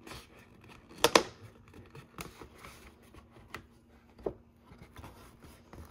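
Plastic packaging on a cardboard box taps and crinkles as a hand handles it.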